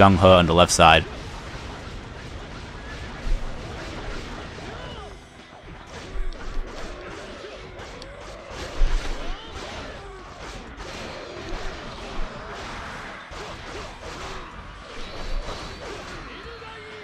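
Swords clash and strike again and again in a fight.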